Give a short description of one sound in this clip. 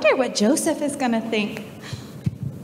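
A woman speaks through a microphone in an echoing hall.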